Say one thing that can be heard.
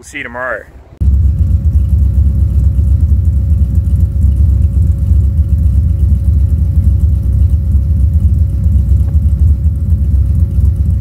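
A vehicle engine idles with a deep, steady exhaust rumble.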